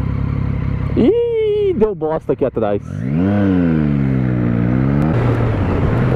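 A motorcycle engine revs up and drops sharply several times as it shifts gears.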